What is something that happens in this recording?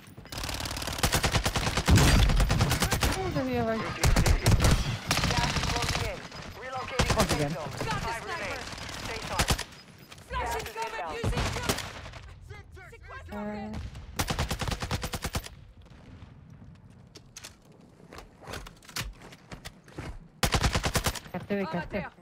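Rapid gunfire bursts loudly in a video game.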